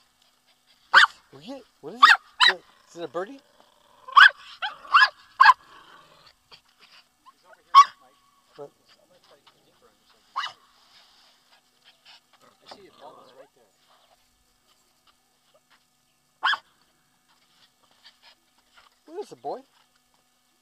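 A small dog barks sharply, close by.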